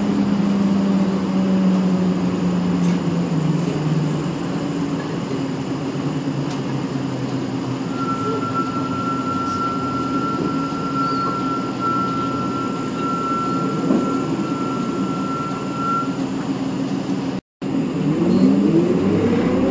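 A vehicle engine hums steadily from inside a moving vehicle.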